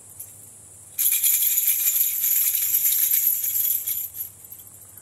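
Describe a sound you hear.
A rattle shakes with a bright, hissing jingle.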